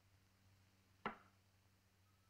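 A small object is set down with a sharp knock.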